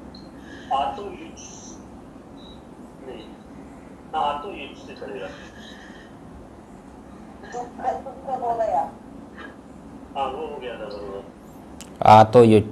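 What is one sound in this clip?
An elderly man speaks calmly and slowly, in short phrases with pauses, close to a microphone.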